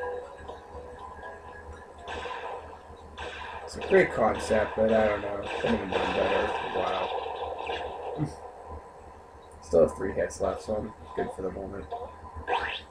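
A video game kart engine hums steadily.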